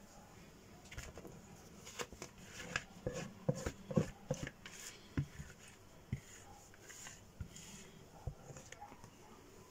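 A pot knocks lightly against the rim of a glass dish.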